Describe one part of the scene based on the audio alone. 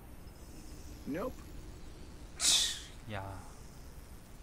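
A man speaks a few short words nearby.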